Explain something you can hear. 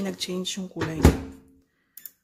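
A microwave door shuts with a thud.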